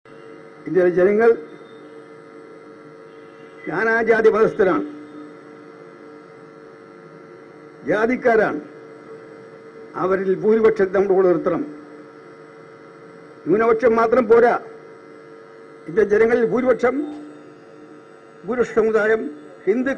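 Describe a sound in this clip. An elderly man speaks slowly into a microphone in short phrases, with pauses between them.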